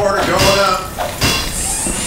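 A wrench clangs against metal.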